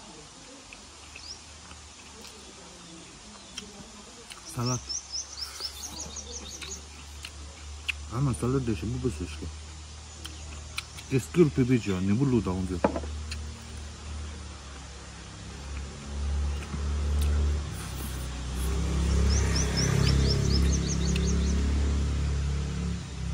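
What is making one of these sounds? A man eats noisily, chewing and slurping close by.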